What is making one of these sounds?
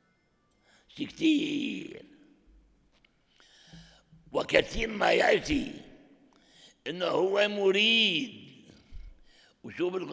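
An elderly man speaks with animation into a microphone, with pauses between phrases.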